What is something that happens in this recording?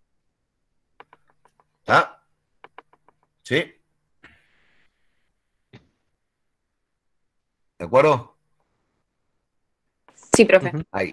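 A man speaks in short bursts through an online call.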